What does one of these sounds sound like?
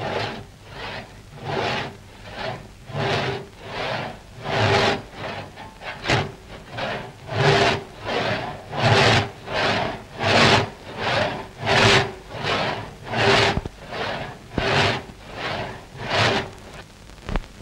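A hand saw cuts through wood in quick, steady back-and-forth strokes.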